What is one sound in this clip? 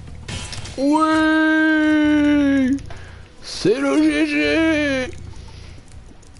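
A bright chiming jingle rings out as treasures are collected.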